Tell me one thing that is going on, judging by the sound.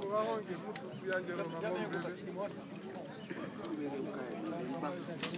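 Several men talk nearby, outdoors.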